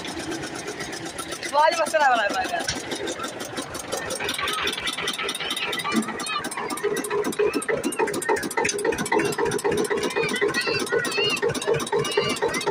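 A tractor engine chugs steadily and rapidly.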